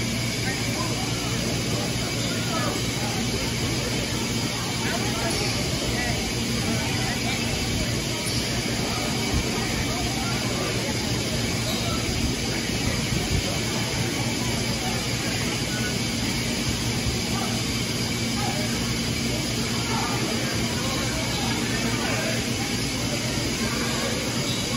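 Spectators chatter and call out.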